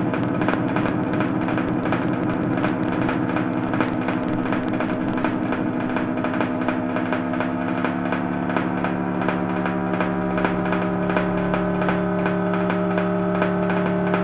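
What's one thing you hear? A guitar plays in a steady rhythm.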